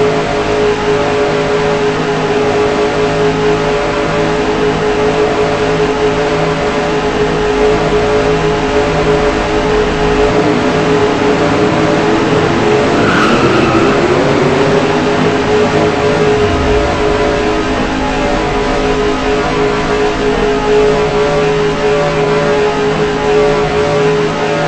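A race car engine drones loud and steady at high speed.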